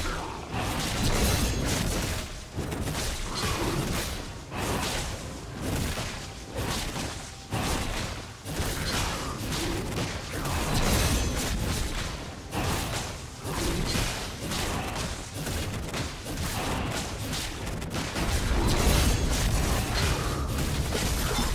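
Rapid clashing and whooshing battle effects ring out.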